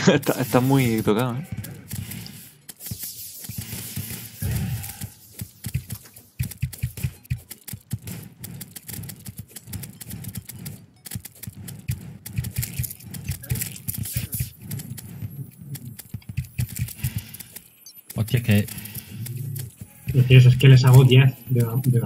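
Small fireworks pop and crackle repeatedly.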